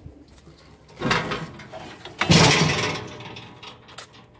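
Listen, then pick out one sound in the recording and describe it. A metal engine cover clanks as it is unlatched and opened.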